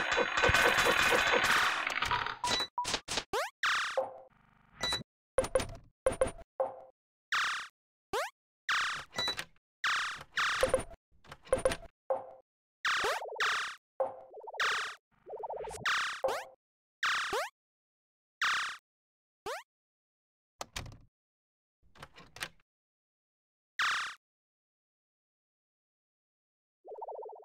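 Short game sound effects chime and pop again and again.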